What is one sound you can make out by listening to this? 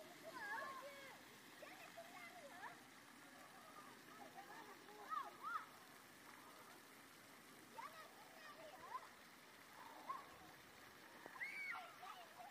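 Water fountains spray and splash steadily.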